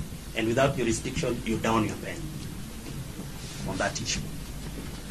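A man speaks loudly and firmly.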